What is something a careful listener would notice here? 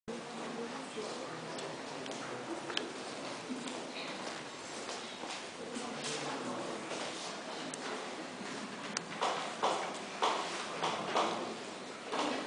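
Audience members murmur and chatter in a large echoing hall.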